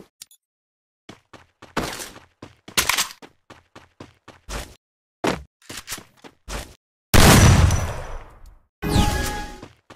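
Footsteps patter quickly as a game character runs.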